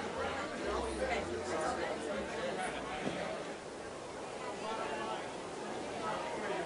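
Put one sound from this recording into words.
A crowd of men and women chat and mingle outdoors.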